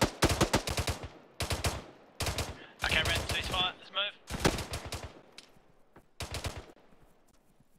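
A rifle fires rapid bursts of loud gunshots.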